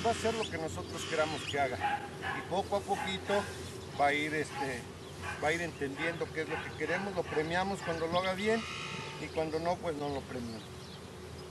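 A man speaks calmly to a dog outdoors.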